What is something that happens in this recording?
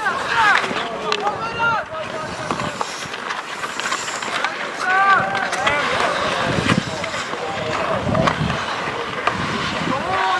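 Men shout to each other across the ice at a distance.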